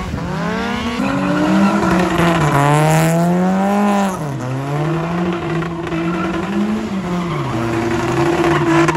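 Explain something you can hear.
A second car engine drones steadily nearby.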